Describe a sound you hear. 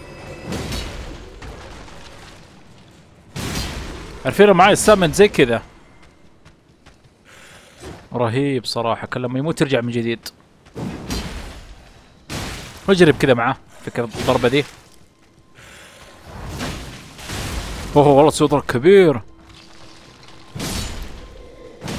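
A heavy blade swings and whooshes through the air.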